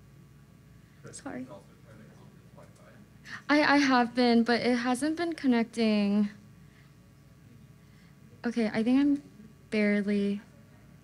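A young woman speaks calmly into a microphone, heard over loudspeakers.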